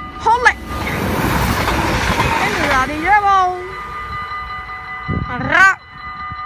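A train horn sounds in short blasts.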